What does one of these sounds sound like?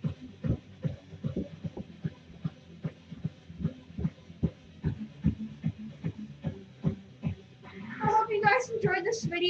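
Bare feet thump and shuffle on a carpeted floor close by.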